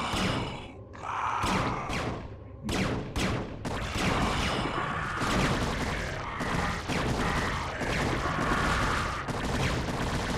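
Game creatures clash in battle with rapid attack and hit sounds.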